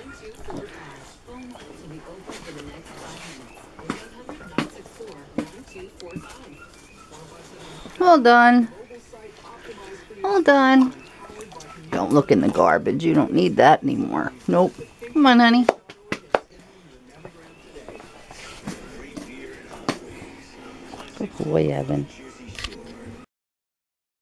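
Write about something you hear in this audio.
A dog's claws click and tap on a hard tile floor.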